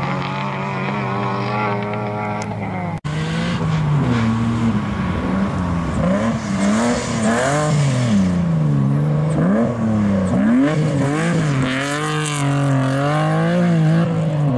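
A rally car engine revs hard, rising and falling.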